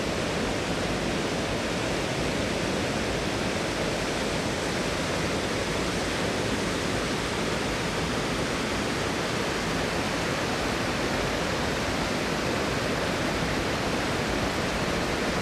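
A waterfall splashes steadily onto rock.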